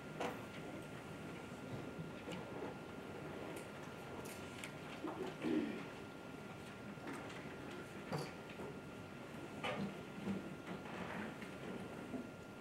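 Small knocks and rustles sound from a seated audience.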